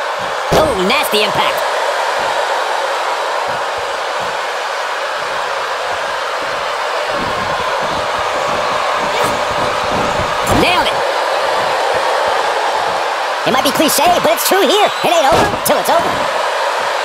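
Bodies thud onto a wrestling ring's mat.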